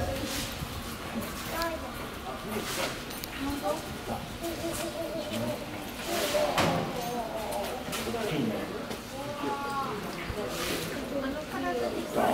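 An elephant's heavy feet thud softly on a hard floor as it walks away.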